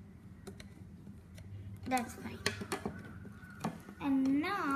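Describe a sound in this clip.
A metal spoon clicks and scrapes inside a plastic tube.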